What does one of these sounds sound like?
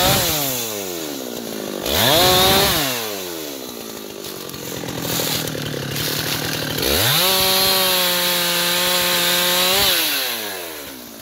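A chainsaw revs loudly and cuts into wood.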